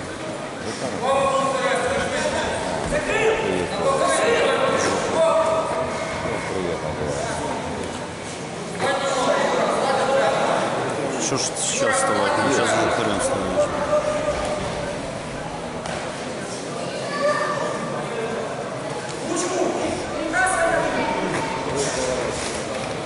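Men shout loudly from close by in an echoing hall.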